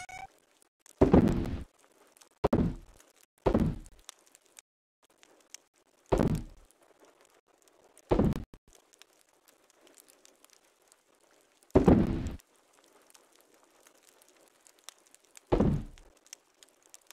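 Short thudding clicks sound as items are picked up and moved in a game.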